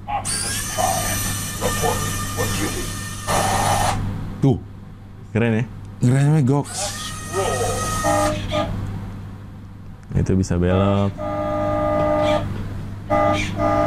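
A toy truck plays loud electronic sound effects.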